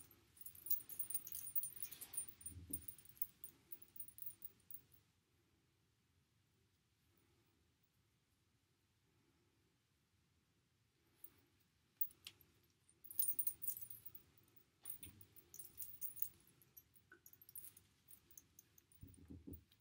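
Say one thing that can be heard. Hands rustle through long hair close by.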